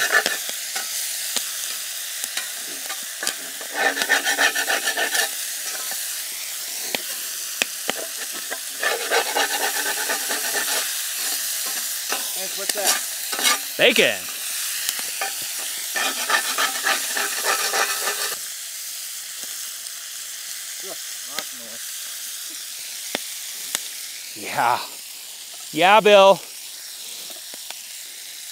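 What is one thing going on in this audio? Bacon sizzles and crackles in a hot pan.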